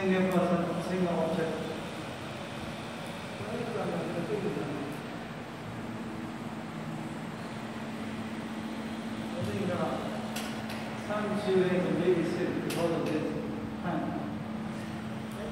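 A middle-aged man speaks calmly in pauses, in an echoing hall.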